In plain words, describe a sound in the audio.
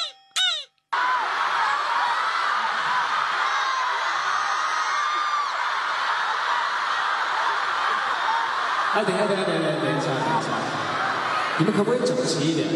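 A large crowd screams and cheers loudly in a big echoing hall.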